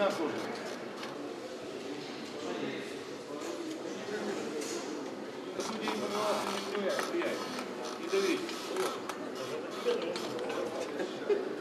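Men's voices murmur and call out in an echoing hall.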